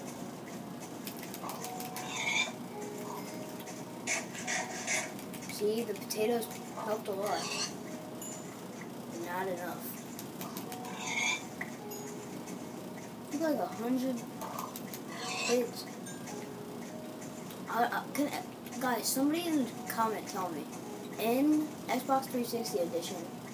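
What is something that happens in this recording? Cartoonish pigs grunt and squeal through a small speaker.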